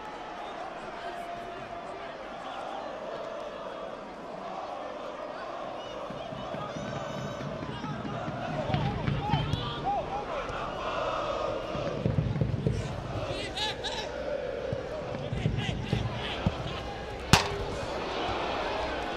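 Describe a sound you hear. A stadium crowd murmurs and chants steadily in the distance.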